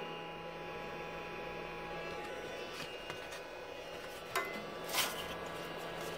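A sanding belt rustles and scrapes as it is handled.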